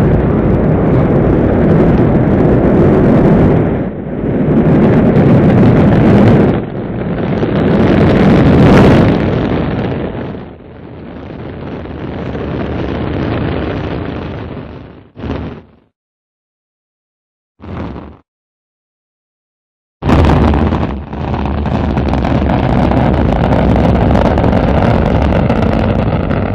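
A rocket engine roars loudly.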